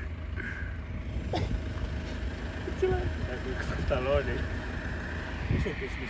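Young men laugh close by.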